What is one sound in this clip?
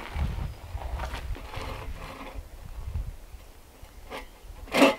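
A hand saw rasps back and forth through wood.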